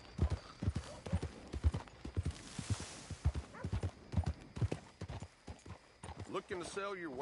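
A horse's hooves clop steadily on a dirt path.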